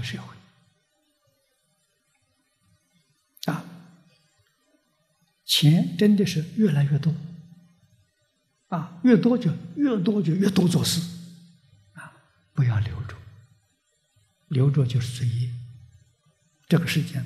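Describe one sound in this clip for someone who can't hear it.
An elderly man speaks calmly and slowly into a microphone, with long pauses.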